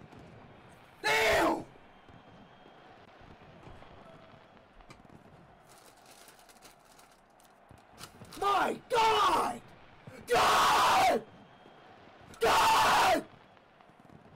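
A young man shouts and screams loudly into a close microphone.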